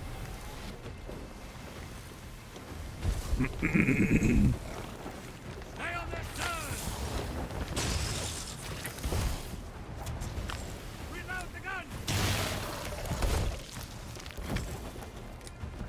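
Ocean waves surge and splash against a wooden ship.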